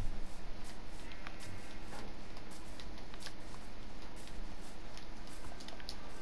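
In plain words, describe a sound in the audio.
Soft clicks tick as items are moved.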